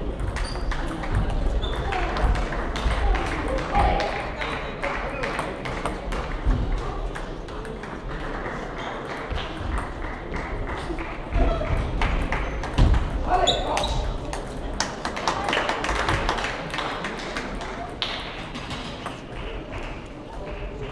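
Table tennis balls click sharply on paddles and tables, echoing in a large hall.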